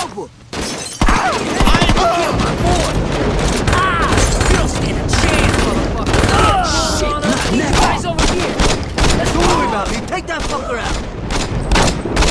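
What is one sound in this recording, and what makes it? A pistol fires shots in a gunfight.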